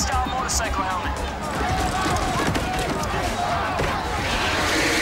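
A crowd of men shout in a scuffle.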